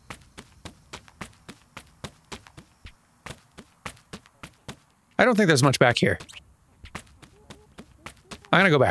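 Quick light footsteps patter on sandy ground.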